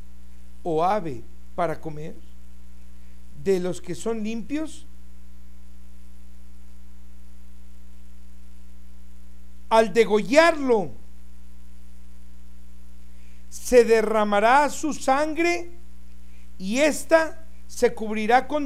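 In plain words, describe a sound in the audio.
A man speaks calmly and deliberately into a close microphone, with long pauses.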